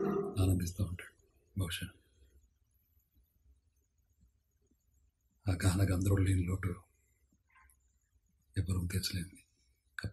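A man speaks calmly in short bursts close to the microphone.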